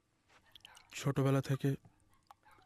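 Liquid pours from a bottle into a glass.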